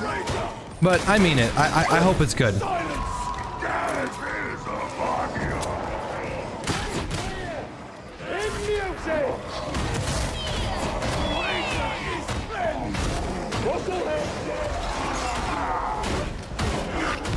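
Monsters growl and roar.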